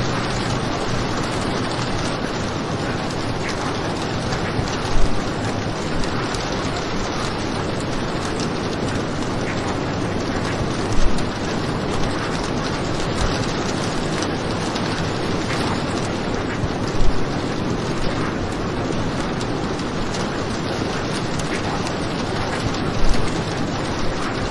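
Heavy rain pours steadily against a window.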